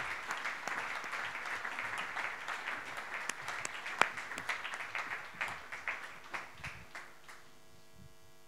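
An audience applauds in a hall, fading out.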